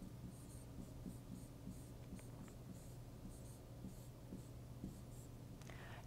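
A marker squeaks on a board as it writes.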